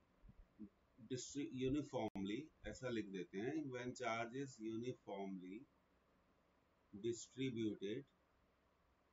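A man speaks calmly through a microphone, as if explaining.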